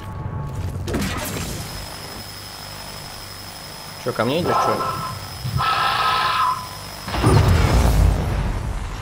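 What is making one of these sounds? A beam weapon hisses and crackles steadily as it fires.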